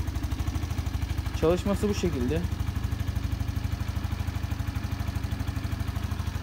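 A scooter engine idles with a steady, rapid putter close by.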